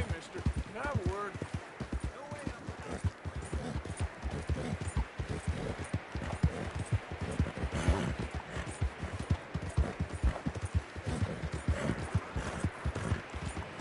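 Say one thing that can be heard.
A horse's hooves thud steadily on soft ground at a gallop.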